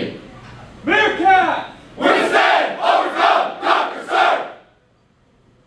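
A group of men shout in loud unison in a large room.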